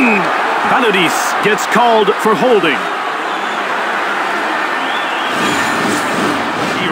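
A large crowd cheers and murmurs steadily in an echoing arena.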